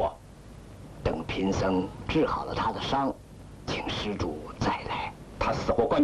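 An elderly man answers calmly.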